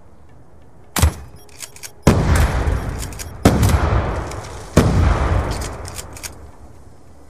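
A heavy gun fires loud booming shots that echo away.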